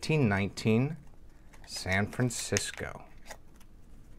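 Plastic crinkles as a coin is handled.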